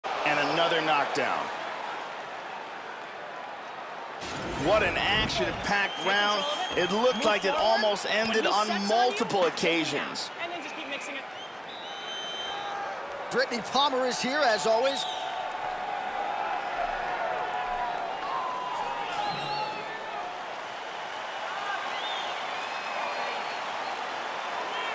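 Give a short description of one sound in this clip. A crowd murmurs and cheers in a large arena.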